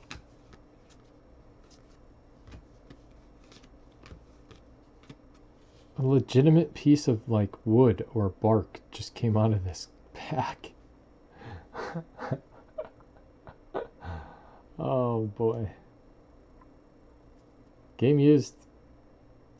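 Trading cards rustle and flick softly as they are shuffled by hand.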